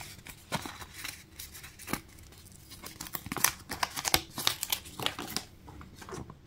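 A paper wrapper crinkles and tears as fingers peel it open.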